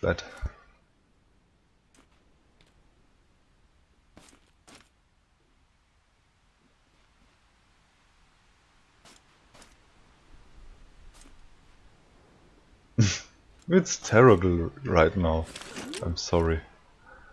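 Footsteps patter across soft grass.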